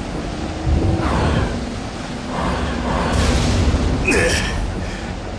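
Energy beams fire with sharp electric zaps.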